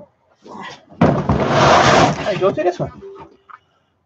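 A plastic bin thumps and scrapes on a wooden bench close by.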